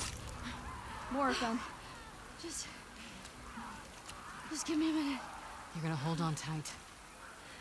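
A young woman sobs and whimpers close by.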